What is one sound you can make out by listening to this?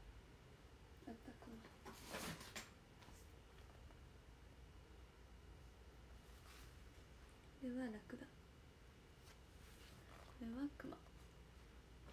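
Paper pages rustle as a sketchbook is handled.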